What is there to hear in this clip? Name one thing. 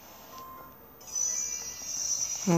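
A handheld video game plays bright electronic music and sound effects.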